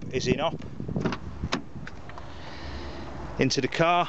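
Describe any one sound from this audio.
A car door latch clicks open.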